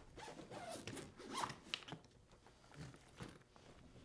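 A zipper rasps open on a suitcase.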